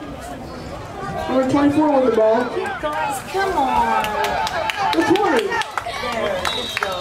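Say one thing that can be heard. Spectators cheer and shout outdoors during a play.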